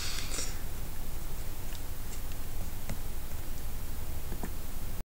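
A young man speaks calmly and close by, through a small microphone.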